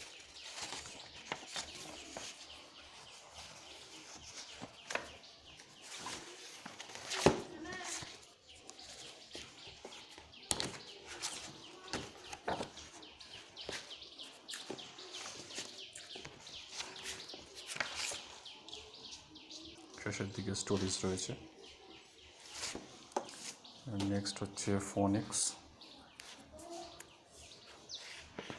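Paper pages rustle and flap as a book is leafed through.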